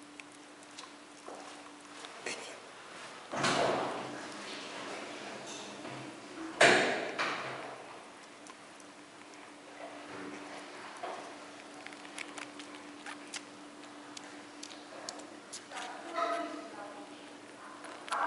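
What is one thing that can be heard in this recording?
A baby squirrel sucks and smacks softly at a feeding syringe.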